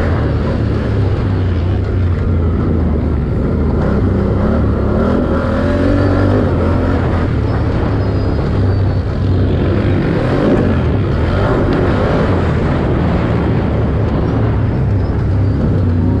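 A dirt bike engine roars close by, revving up and down.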